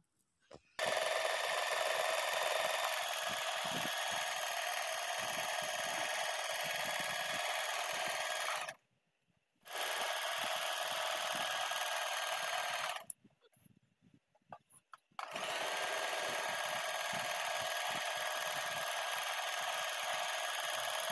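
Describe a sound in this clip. A sewing machine whirs steadily as it stitches, stopping briefly now and then.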